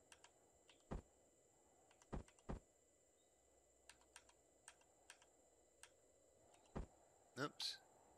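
Short electronic clicks sound as blocks snap into place.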